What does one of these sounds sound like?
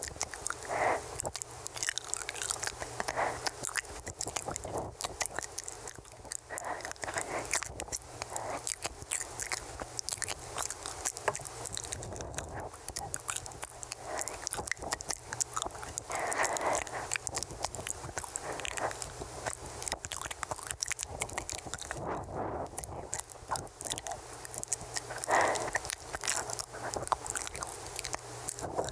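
A young woman whispers very close to a microphone.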